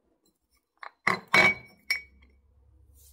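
Hands open a plastic container lid with sharp clicks.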